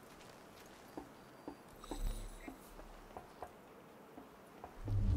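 Footsteps thud on a rooftop.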